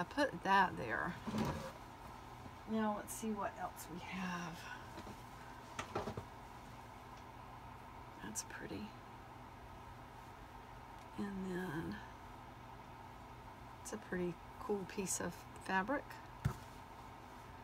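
Soft fabric rustles as cloth is handled and stacked.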